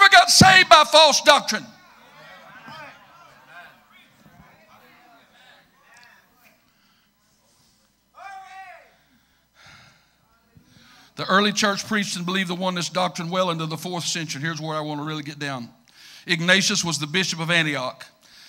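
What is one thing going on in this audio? A middle-aged man preaches passionately through a microphone in an echoing hall, pausing between phrases.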